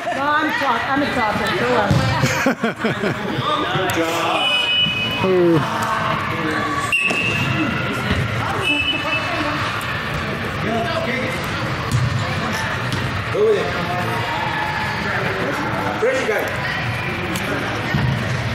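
Young players shout to each other in a large echoing hall.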